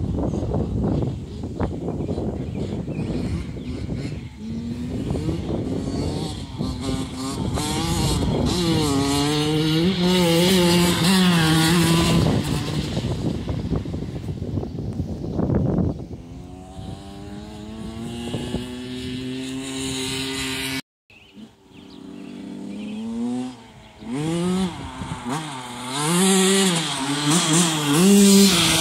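A dirt bike engine revs up and down, rising and falling in pitch.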